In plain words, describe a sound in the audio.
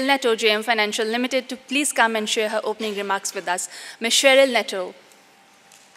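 A young woman speaks into a microphone over a loudspeaker in a large room.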